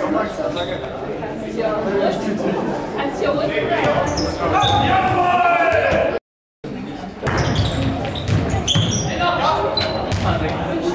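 Young men call out to each other in an echoing hall.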